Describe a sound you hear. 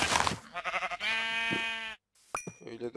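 A pig grunts.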